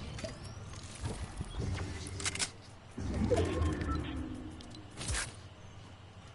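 Game menu sounds click and chime.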